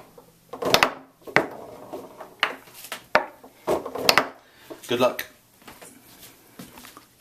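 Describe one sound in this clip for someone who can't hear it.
Foosball rods rattle and thump as they spin and slide.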